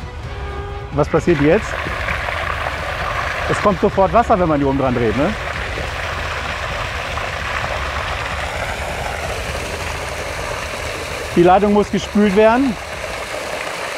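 Water gushes and splashes onto the ground.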